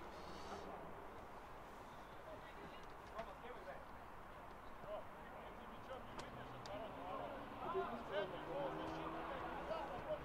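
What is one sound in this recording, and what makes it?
Young men shout to each other in the distance across an open outdoor field.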